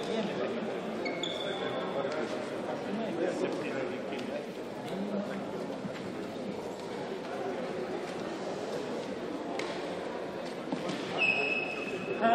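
Many voices murmur and chatter in a large echoing hall.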